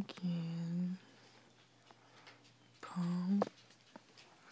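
A small dog grumbles low in short bursts.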